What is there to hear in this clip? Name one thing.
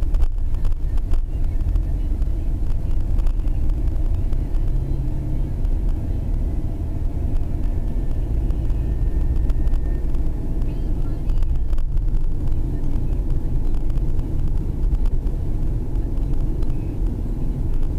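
Road noise and a low engine rumble fill the cabin of a car driving at highway speed.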